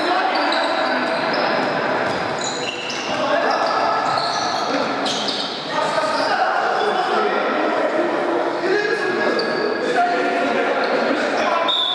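A ball thuds as it is kicked in a large echoing hall.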